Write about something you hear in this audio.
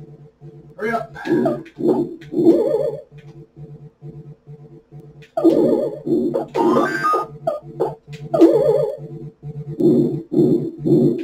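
Arcade game music plays in a quick, steady beeping rhythm.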